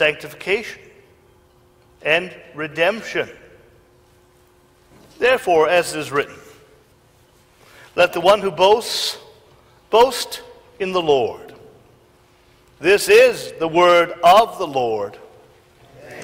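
A man speaks calmly through a microphone in a large echoing room.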